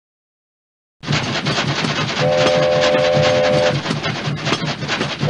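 A steam train chugs steadily.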